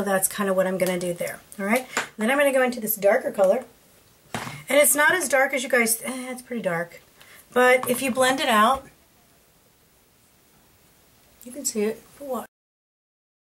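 A woman talks calmly close to a microphone.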